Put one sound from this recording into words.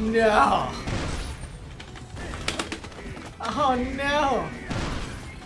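Punches and kicks land with sharp thuds.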